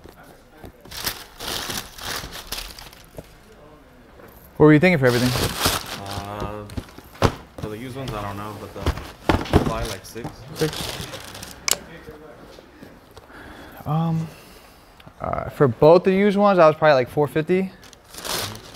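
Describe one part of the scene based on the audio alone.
Paper rustles as it is pulled from a shoe box.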